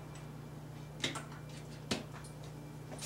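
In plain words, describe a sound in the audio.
Metal parts click and clack.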